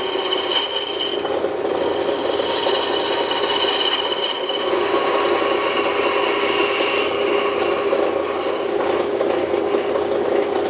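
A chisel scrapes and shaves spinning wood.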